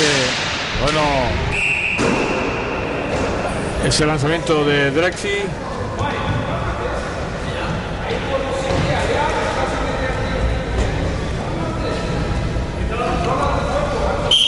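Players shout to each other, echoing in a large hall.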